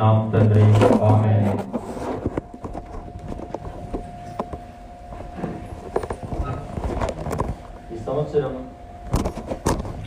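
A man speaks through a microphone and loudspeakers in an echoing hall.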